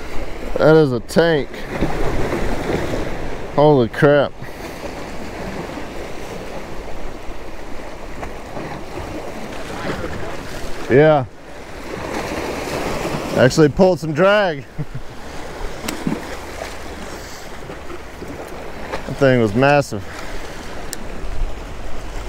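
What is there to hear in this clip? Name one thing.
Small waves splash against rocks.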